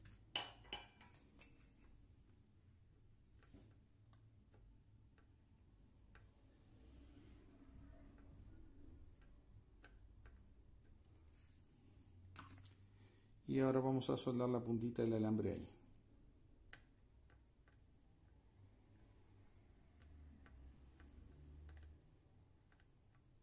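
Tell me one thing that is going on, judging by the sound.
A metal tool clicks and scrapes against a circuit board.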